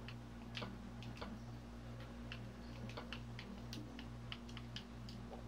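Soft clicks tick quickly as items are moved in a game menu.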